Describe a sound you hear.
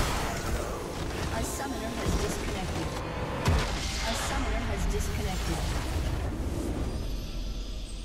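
A loud explosion booms and crumbles in a fantasy battle game.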